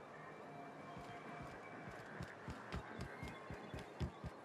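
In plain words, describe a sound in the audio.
Footsteps tread steadily on hard stone.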